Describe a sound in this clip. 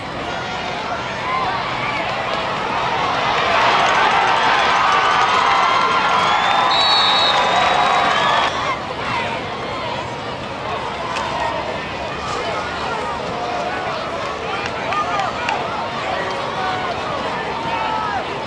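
Many people talk and call out in an outdoor crowd.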